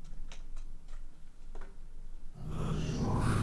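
A glass door swings open.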